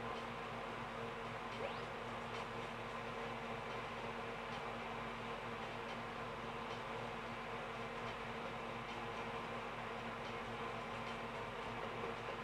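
Cheerful video game music plays through a small television speaker.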